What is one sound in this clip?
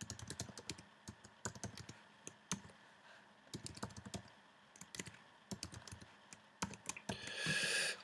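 Keys clack quickly on a computer keyboard.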